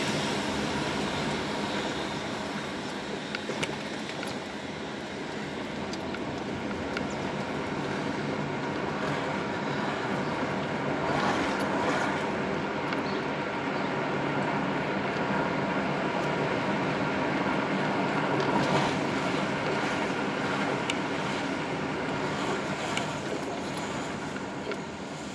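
A car engine hums steadily from inside the car as it drives along a street.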